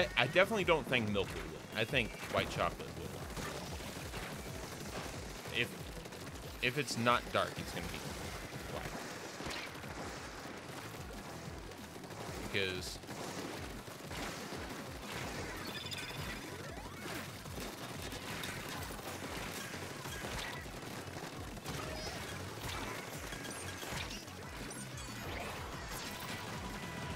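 Paint guns fire with wet, splattering bursts.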